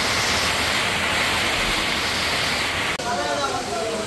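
Rain patters steadily on wet ground.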